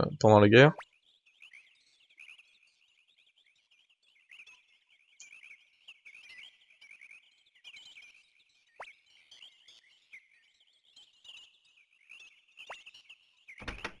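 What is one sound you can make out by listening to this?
Soft, quick electronic blips tick rapidly, one after another.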